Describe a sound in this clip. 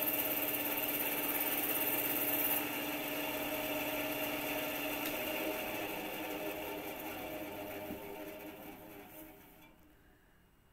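A power tool whirs steadily, then slowly fades away.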